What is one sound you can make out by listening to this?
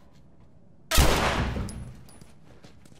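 A gunshot bangs loudly and echoes.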